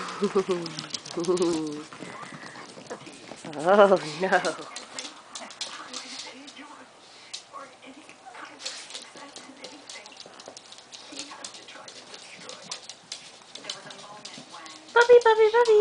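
Small dogs scamper with paws clicking on a wooden floor.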